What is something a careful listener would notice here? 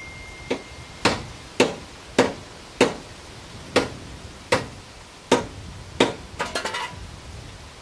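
Metal clanks sharply from a wrench under a car.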